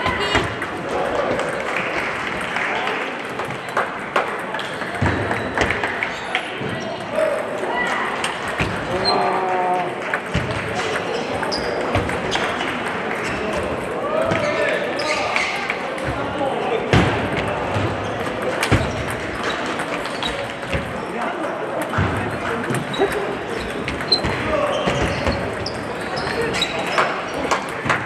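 Table tennis balls click sharply against paddles and tables, over and over.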